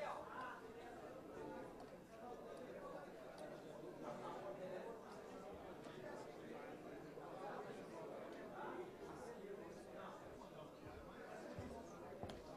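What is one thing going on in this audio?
Many men talk at once in a murmur of overlapping voices, in a large room with some echo.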